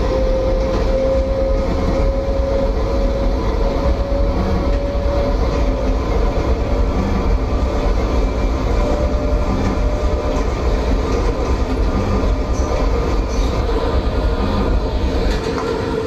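A subway train rumbles steadily along the tracks.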